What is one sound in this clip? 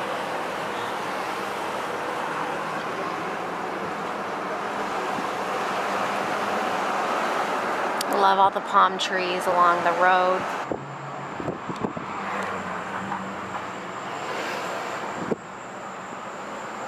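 Tyres hum steadily on the road from inside a moving car.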